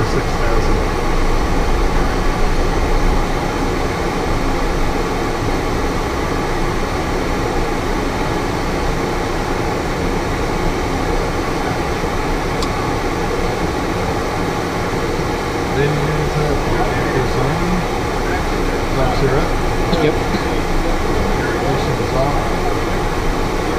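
An aircraft engine drones steadily inside a small cockpit.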